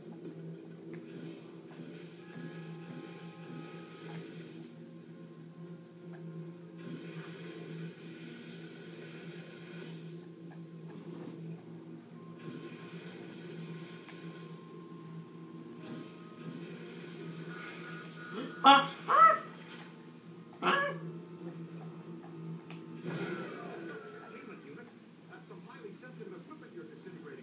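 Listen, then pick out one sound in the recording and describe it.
A video game's action sounds play from a television.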